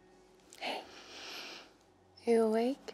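A young woman breathes softly and heavily, close by.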